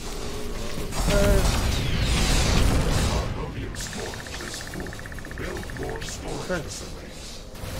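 Explosions boom and crackle loudly.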